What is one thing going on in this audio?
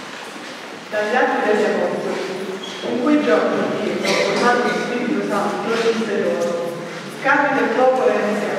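A woman reads out calmly through a microphone in an echoing hall.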